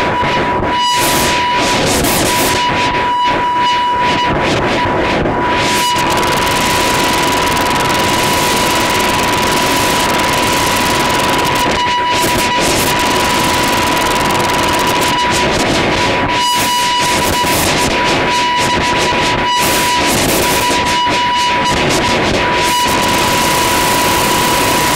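Loud, harsh electronic noise music plays on a synthesizer.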